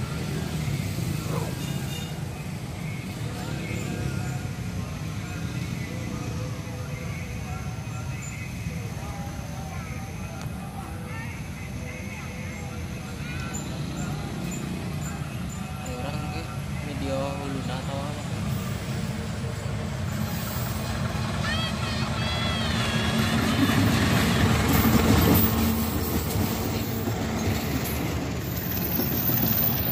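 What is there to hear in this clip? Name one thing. A diesel train approaches and rumbles loudly past close by.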